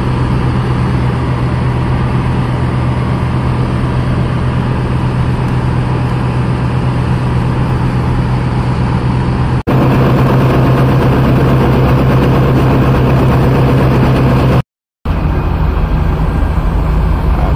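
A crane truck's diesel engine rumbles steadily nearby.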